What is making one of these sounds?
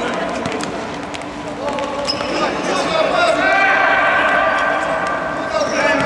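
Players' shoes squeak and thud on an indoor court in an echoing hall.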